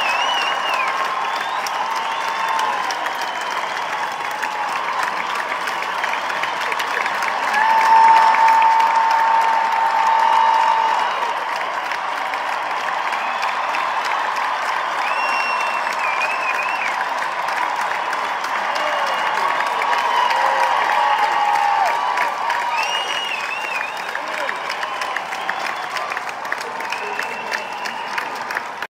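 A large crowd cheers and screams loudly in a big echoing arena.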